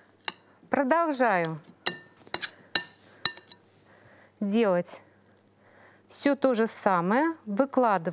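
A spoon scrapes filling from a bowl.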